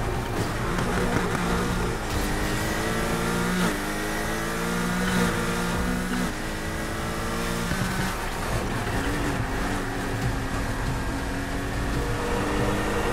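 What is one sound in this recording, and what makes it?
A sports car engine roars at high speed, its pitch climbing through each gear and dropping at every shift.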